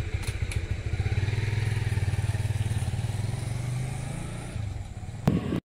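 A motorcycle engine rumbles as it rides past close by.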